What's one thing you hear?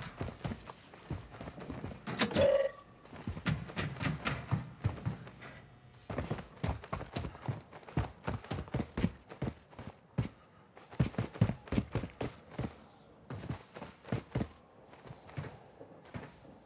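Footsteps run quickly over hard ground and gravel.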